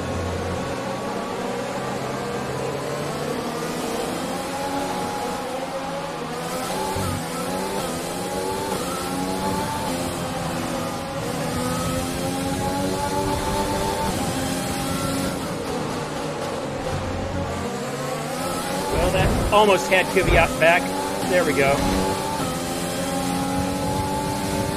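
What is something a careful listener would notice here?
A racing car engine whines loudly, its pitch rising and falling through the gears.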